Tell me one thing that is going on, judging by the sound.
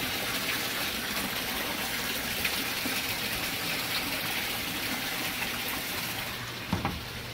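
Water pours and splashes into a tank.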